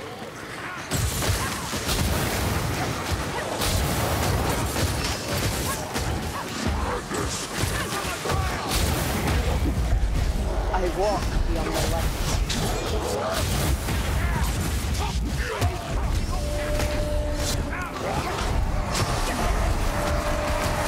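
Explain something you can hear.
Heavy blows thud against armour and bodies.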